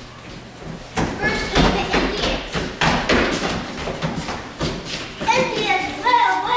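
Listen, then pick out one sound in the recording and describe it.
Feet thump and shuffle across a wooden stage.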